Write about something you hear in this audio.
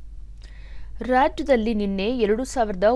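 A woman reads out news calmly into a microphone.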